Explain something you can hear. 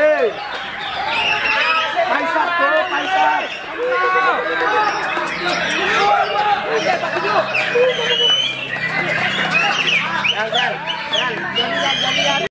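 A caged songbird sings a rapid, varied song of chirps and whistles close by.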